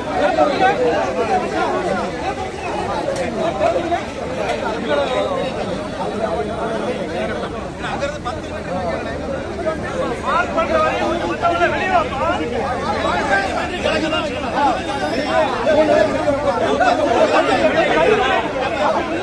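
A large crowd of men talks and shouts all at once outdoors.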